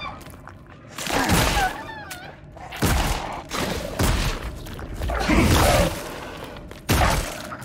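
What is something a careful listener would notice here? A revolver fires loud, echoing shots.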